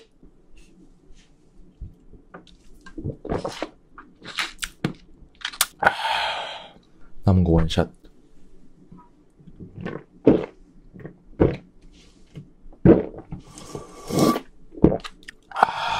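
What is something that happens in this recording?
A young man gulps a drink loudly close to a microphone.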